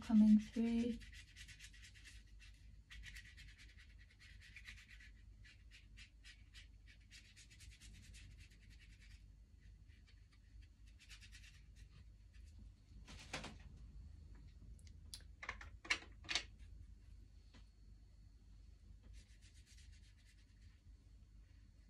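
A paintbrush swishes and scratches softly on paper.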